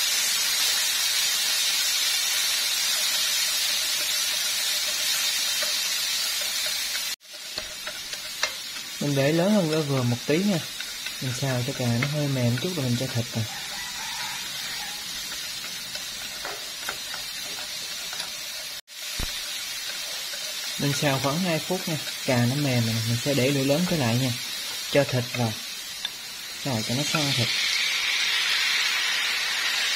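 Diced tomatoes sizzle in oil in a frying pan.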